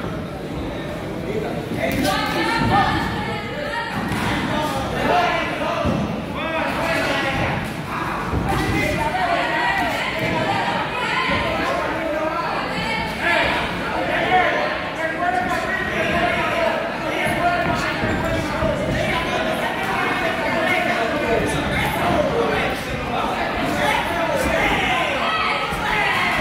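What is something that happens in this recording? A crowd of men and women talk and shout loudly nearby.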